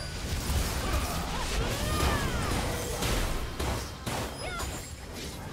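Game weapons clash and thud during a fight.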